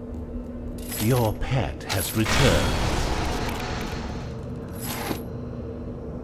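Game sound effects chime and clink.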